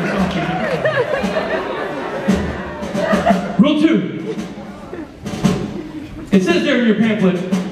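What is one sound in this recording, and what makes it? A man talks with animation into a microphone, amplified through loudspeakers in an echoing hall.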